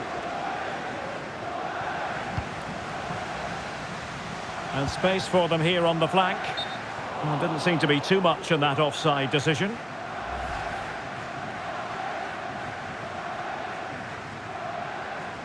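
A stadium crowd murmurs and roars steadily in a large open space.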